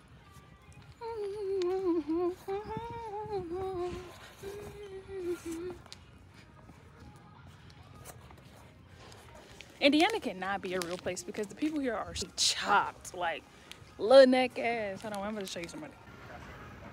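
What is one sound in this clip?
A young woman talks close up, with animation.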